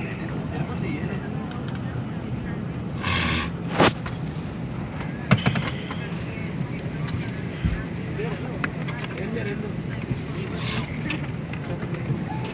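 An aircraft cabin hums steadily.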